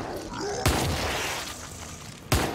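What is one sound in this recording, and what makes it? A fiery explosion bursts and crackles.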